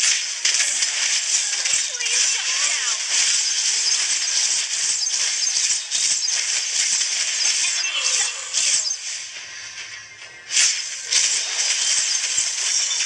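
Game combat effects clash and whoosh with bright hissy bursts.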